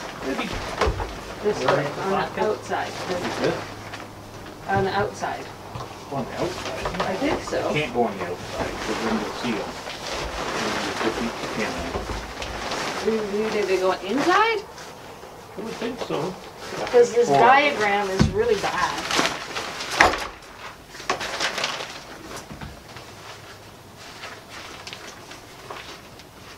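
A tarp rustles and crinkles as it is handled.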